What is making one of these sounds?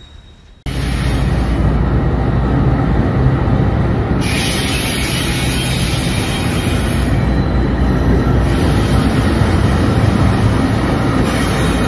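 A diesel locomotive engine rumbles loudly close by, echoing under a bridge.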